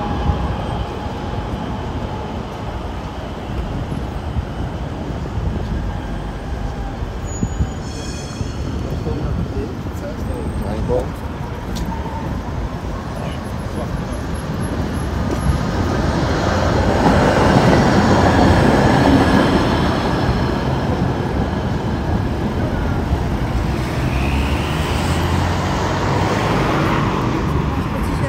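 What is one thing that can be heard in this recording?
Men and women chat nearby as they walk.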